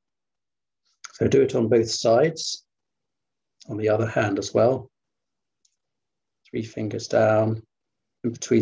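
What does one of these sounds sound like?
A man speaks calmly in short phrases, heard through an online call.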